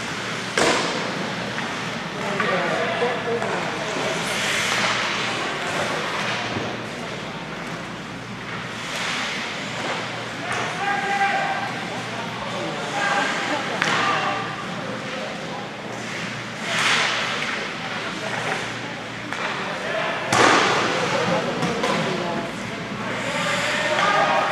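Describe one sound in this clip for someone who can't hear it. Skate blades scrape and hiss across ice in a large echoing rink.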